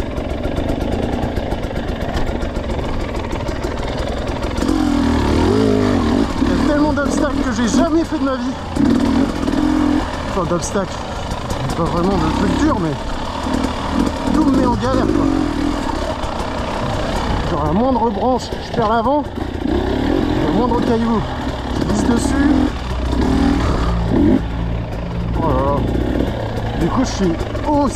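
A dirt bike engine revs and putters over rough ground.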